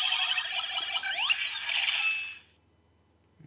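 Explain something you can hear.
A toy belt plays loud electronic sound effects with a rising whoosh.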